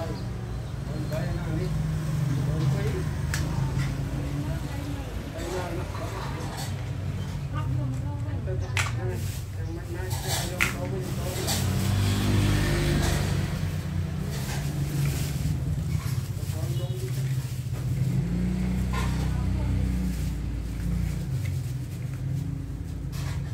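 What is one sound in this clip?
Plastic toy blocks click and clatter as a child snaps them together.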